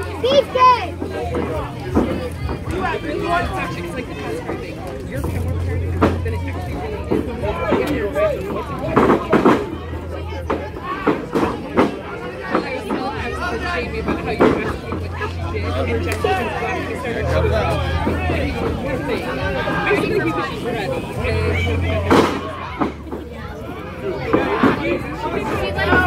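A crowd of spectators chatters nearby outdoors.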